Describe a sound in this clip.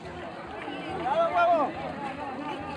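A young man shouts loudly close by.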